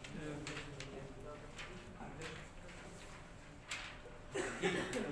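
Young men talk and chatter nearby.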